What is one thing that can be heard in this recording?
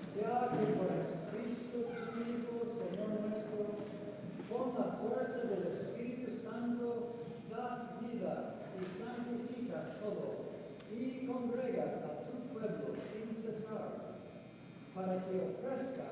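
A middle-aged man chants in a steady sung voice through a microphone, echoing in a large hall.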